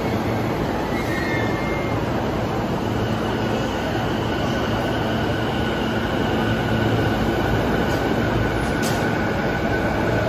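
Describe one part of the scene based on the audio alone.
A train's brakes squeal as it comes to a stop.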